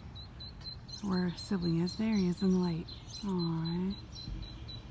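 A bird calls nearby in a series of loud, drawn-out cries.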